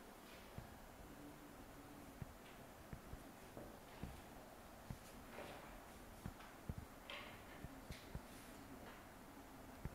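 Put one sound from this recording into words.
A marker squeaks as it writes on a whiteboard.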